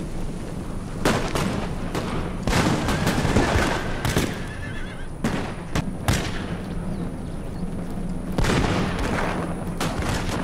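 Muskets fire in sharp, scattered volleys.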